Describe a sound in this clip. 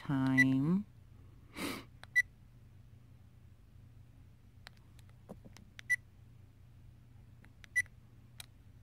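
A small electronic device gives short, high beeps.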